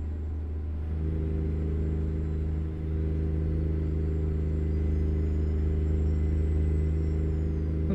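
A truck's diesel engine rumbles steadily with a low drone.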